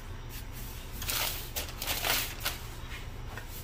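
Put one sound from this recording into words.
A plastic bag crinkles.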